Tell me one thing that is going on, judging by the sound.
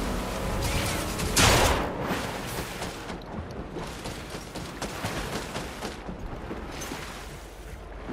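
Water splashes as a game character swims through a lake.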